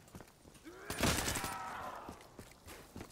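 A gun fires a loud, echoing burst.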